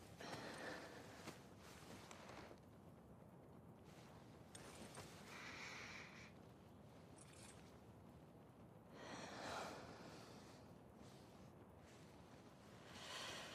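Fabric rustles softly as a jacket is handled.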